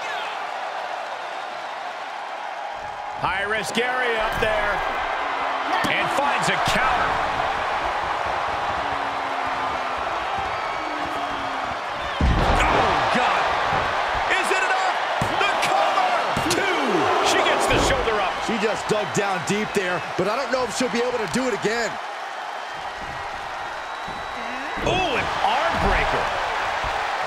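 A large crowd cheers steadily in a big arena.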